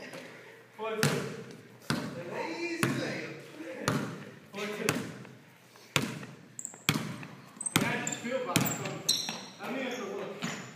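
A basketball bounces on a hard floor, echoing through a large hall.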